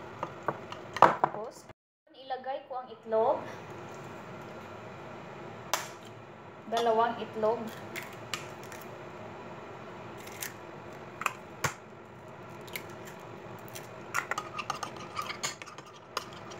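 A metal spoon scrapes and clinks against a glass dish.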